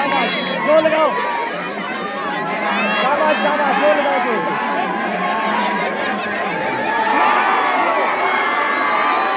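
A large crowd cheers and shouts excitedly outdoors.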